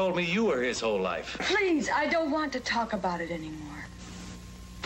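A young woman speaks with emotion, close by.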